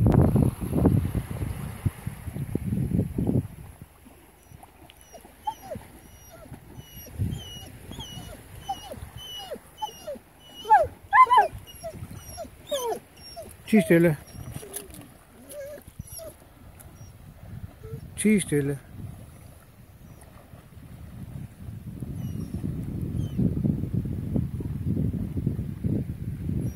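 A horse wades through shallow water, splashing.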